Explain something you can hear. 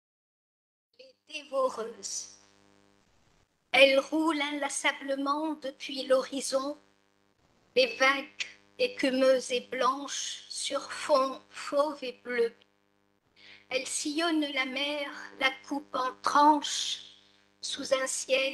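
An older woman reads aloud calmly through a microphone.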